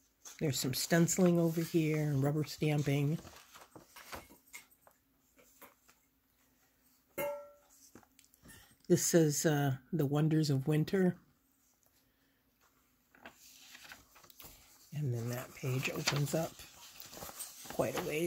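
Stiff paper pages rustle as they are turned by hand.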